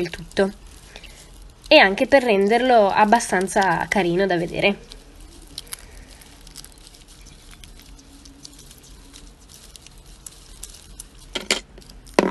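Shiny plastic tape crinkles and rustles under fingers.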